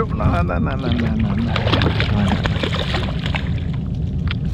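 A fish splashes and thrashes in the water close by.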